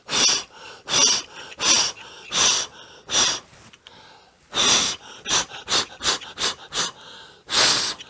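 A man blows puffs of air close by in short, repeated bursts.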